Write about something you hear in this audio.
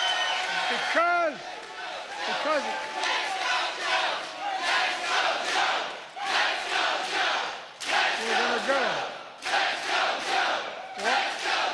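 An elderly man speaks with animation into a microphone over loudspeakers.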